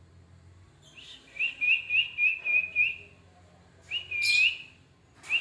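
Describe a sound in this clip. A parrot squawks in sharp, repeated shrieks close by.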